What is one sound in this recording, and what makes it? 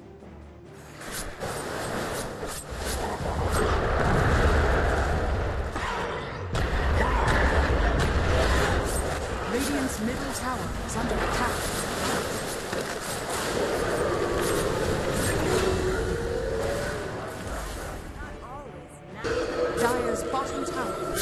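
Magic spells crackle and blast in a rapid clash of game sound effects.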